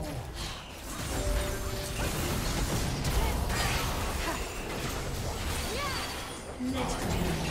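Video game fighters clash with bursts of magic and impacts.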